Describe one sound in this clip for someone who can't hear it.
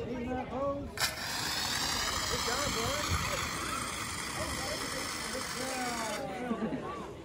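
A fire extinguisher sprays with a loud steady hiss.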